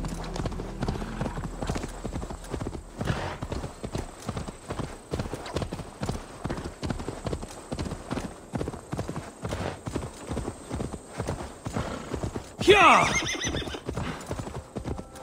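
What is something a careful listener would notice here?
A horse's hooves thud rhythmically at a gallop on soft ground.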